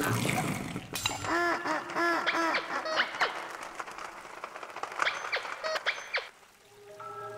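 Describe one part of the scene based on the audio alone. A duck quacks loudly several times.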